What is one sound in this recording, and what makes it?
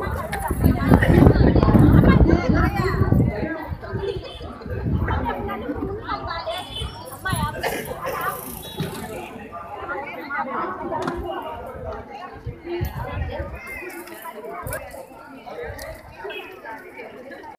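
A crowd of women murmurs and chatters nearby.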